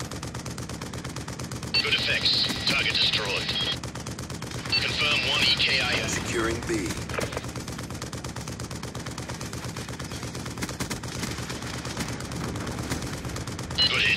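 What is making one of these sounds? Heavy guns fire in rapid, booming bursts.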